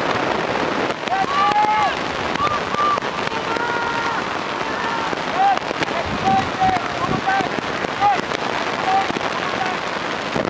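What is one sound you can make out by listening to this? Spectators cheer and shout from the sideline.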